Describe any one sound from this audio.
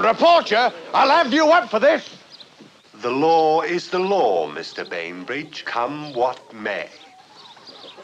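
A man talks loudly and animatedly, close by.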